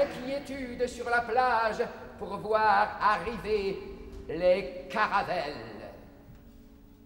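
A man shouts and sings loudly.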